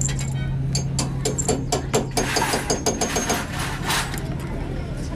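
Pliers clink against a metal chain.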